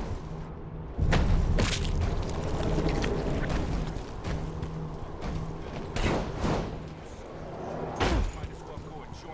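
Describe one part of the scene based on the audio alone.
Heavy thuds sound as a figure lands.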